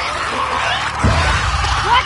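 A blade swings and strikes with a heavy thud.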